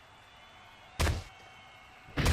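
A heavy thud of a body hitting a wrestling mat.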